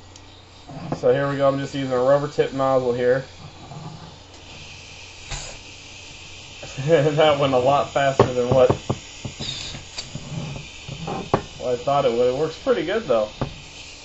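A plastic tube knocks and scrapes against a hard tabletop.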